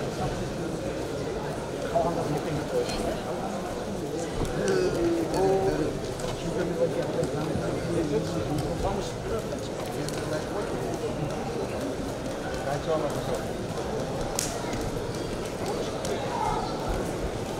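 Wrestlers' shoes squeak and thud on the mat.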